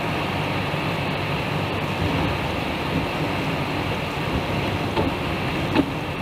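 A car's engine and tyres rumble steadily on a highway from inside the cabin.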